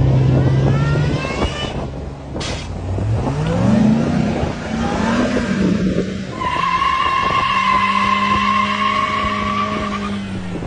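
A truck engine revs and whines as the truck strains over rough ground.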